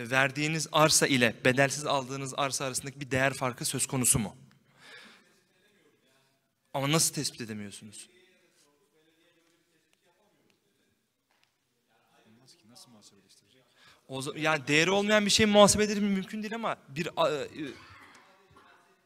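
A man speaks calmly into a microphone, heard through a loudspeaker in a hall.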